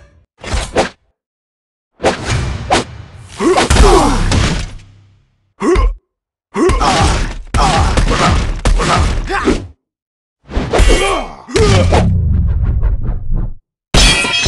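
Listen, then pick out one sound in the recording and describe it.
A sword whooshes through the air.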